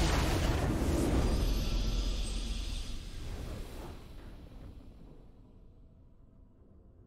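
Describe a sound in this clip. A game's victory fanfare swells and slowly fades away.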